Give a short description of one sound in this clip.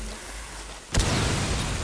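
Gunshots ring out close by.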